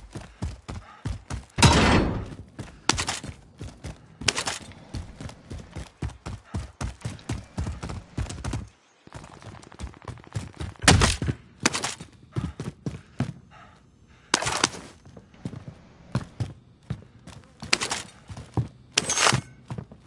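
Footsteps patter quickly over ground and floors.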